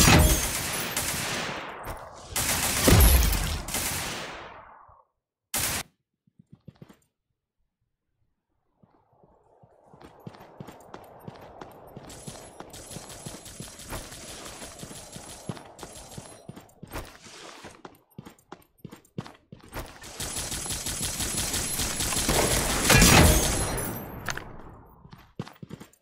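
Gunshots crack loudly in quick bursts.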